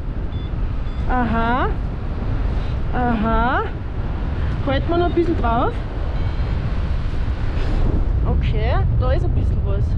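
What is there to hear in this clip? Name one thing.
Wind rushes loudly past, outdoors high in the air.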